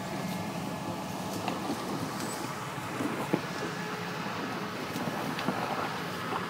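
An off-road vehicle's engine rumbles and strains as it climbs a muddy slope.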